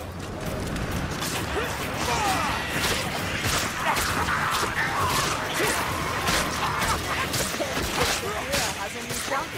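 A blade hacks into bodies with wet, heavy blows.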